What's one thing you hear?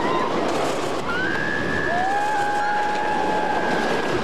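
Riders scream on a roller coaster.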